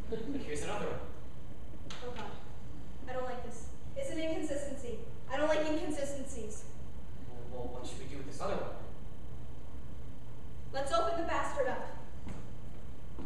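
A woman speaks with animation, a little distant.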